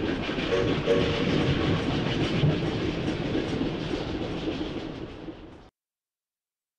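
A row of carriages rumbles along a track and fades away.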